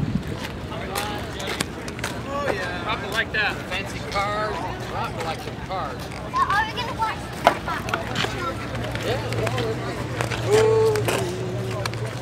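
A crowd of adults chats outdoors.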